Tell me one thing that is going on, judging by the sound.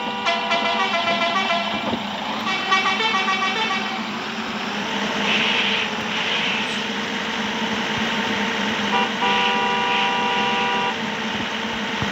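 Car tyres roll along a road.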